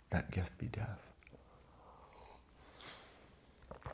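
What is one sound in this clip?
A man slurps from a mug.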